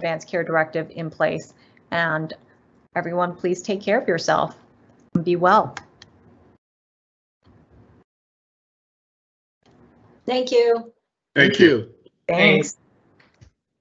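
A young woman speaks calmly through an online call microphone, pausing now and then.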